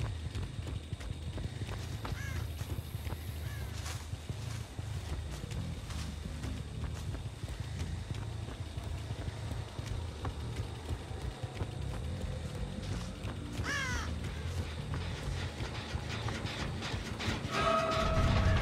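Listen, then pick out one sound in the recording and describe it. Footsteps crunch steadily through dry stalks and dirt.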